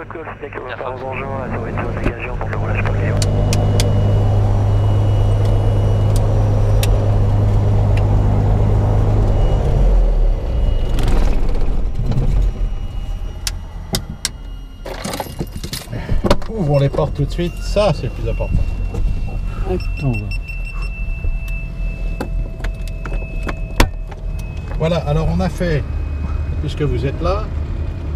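A small plane's propeller engine starts up, roars steadily, then settles to a lower idle.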